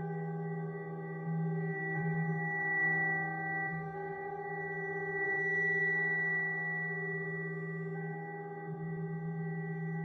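Soft electronic music plays with slow, sustained chords.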